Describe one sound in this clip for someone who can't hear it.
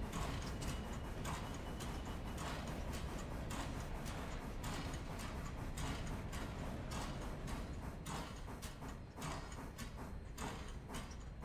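A steam locomotive chuffs steadily in rhythmic puffs.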